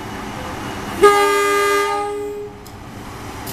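A train horn blares loudly.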